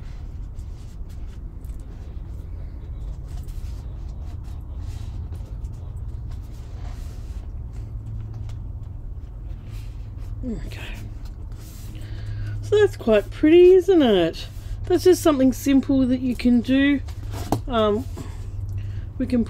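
Paper rustles and crinkles softly as pages are smoothed and handled.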